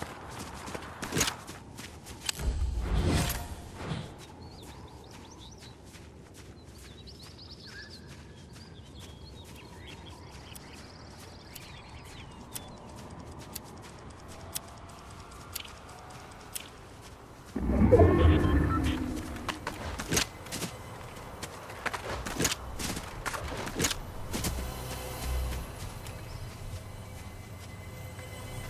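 Footsteps rustle quickly through dry grass.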